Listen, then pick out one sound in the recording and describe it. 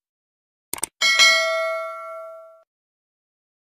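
A small bell rings and fades away.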